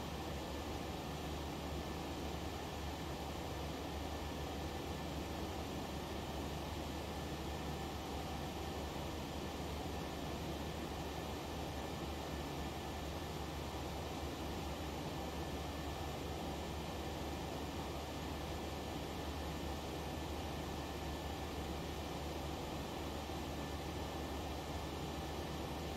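A jet airliner's engines hum steadily, heard from inside the cockpit.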